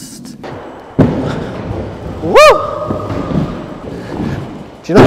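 Skateboard wheels roll and rumble over a wooden ramp.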